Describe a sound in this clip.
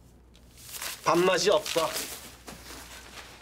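A younger man speaks in a strained, complaining voice.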